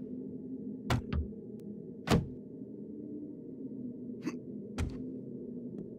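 A wooden club thuds repeatedly against a hard block.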